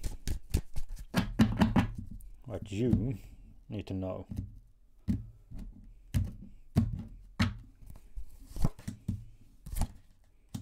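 Playing cards snap and tap against a wooden table.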